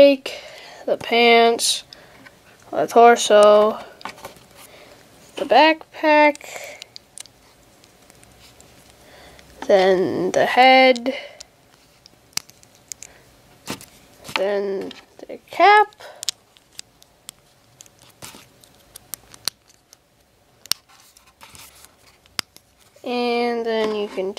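Small plastic toy pieces click and tap as fingers handle them.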